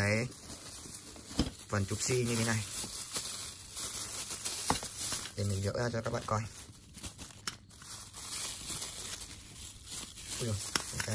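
Plastic bubble wrap crinkles and rustles in hands close by.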